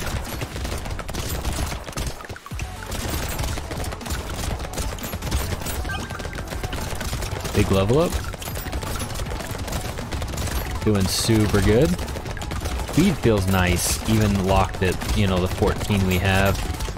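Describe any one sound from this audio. Rapid gunshots fire nonstop in a video game.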